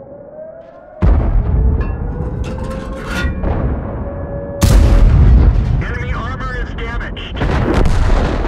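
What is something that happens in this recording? Heavy cannon shots boom and echo.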